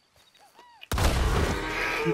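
A gunshot rings out close by.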